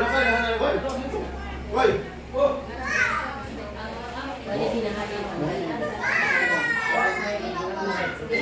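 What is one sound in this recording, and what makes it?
Several women and girls chat and laugh nearby in a room.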